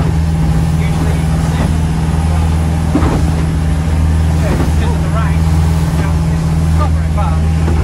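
An elderly woman talks nearby.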